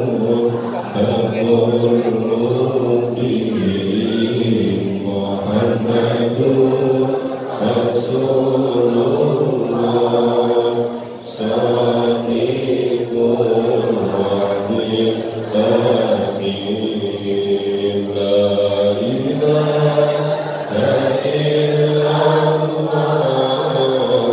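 A man speaks steadily into a microphone through a loudspeaker, his voice ringing in a large hall.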